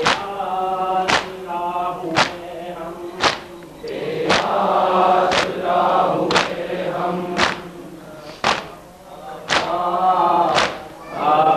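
A crowd of men chant loudly together.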